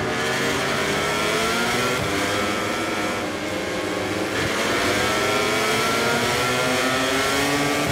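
Racing motorbike engines whine at high revs.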